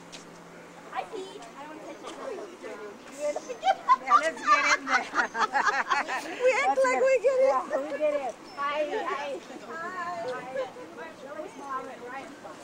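Young women talk and laugh with animation close by.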